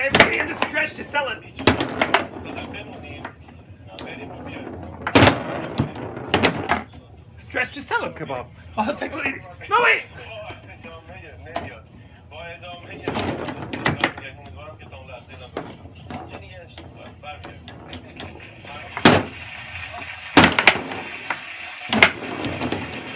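A foosball ball knocks sharply against plastic players and the table's walls.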